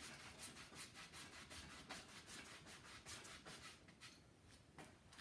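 A brush scratches and taps across a canvas.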